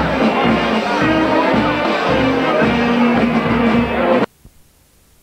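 A bass drum beats steadily.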